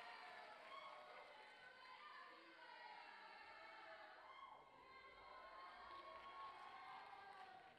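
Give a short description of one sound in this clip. Dancers' feet patter softly on a wooden stage.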